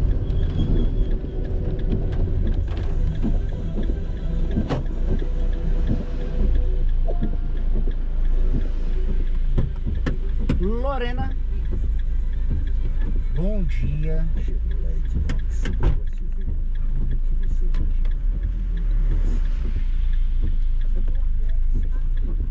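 A car engine rumbles low and steady while driving.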